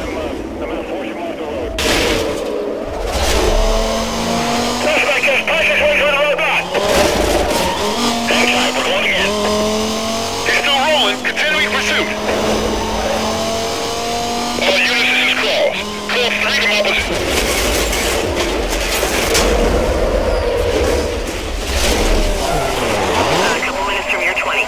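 A racing car's engine roars and revs up and down.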